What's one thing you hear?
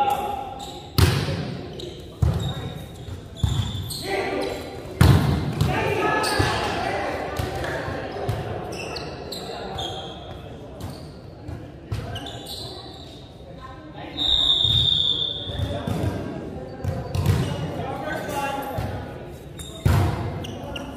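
A volleyball is hit with sharp slaps that echo around a large hall.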